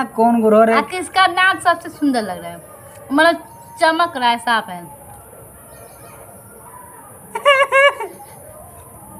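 A young woman speaks close by with animation.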